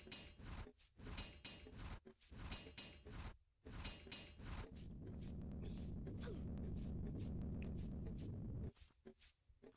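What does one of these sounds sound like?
Quick footsteps slap on stone.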